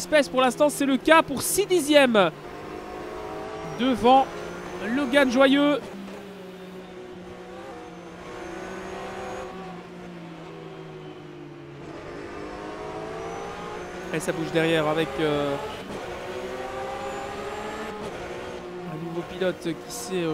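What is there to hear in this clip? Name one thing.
A race car engine drones steadily and rises and falls in pitch as the car speeds up and slows down.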